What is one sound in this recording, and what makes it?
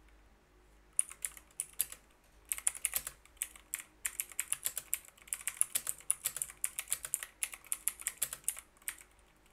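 Computer keys click rapidly as someone types.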